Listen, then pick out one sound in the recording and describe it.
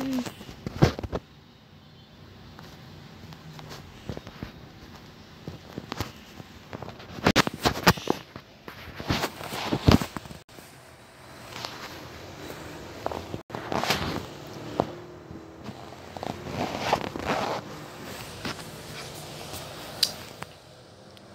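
A young boy talks with animation, close to a microphone.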